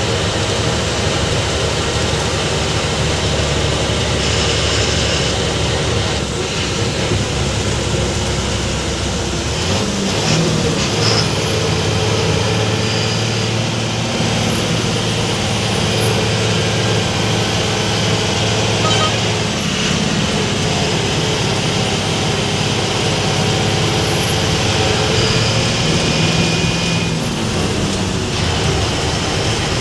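A bus engine drones and revs steadily.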